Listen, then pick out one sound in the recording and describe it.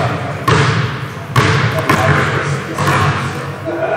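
A basketball bounces on a hard floor in a large echoing hall.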